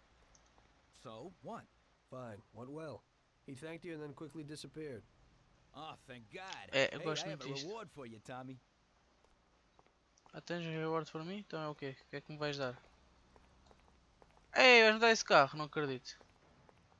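A young man talks calmly into a microphone.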